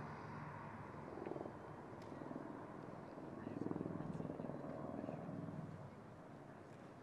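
A car engine hums as a car drives away and fades.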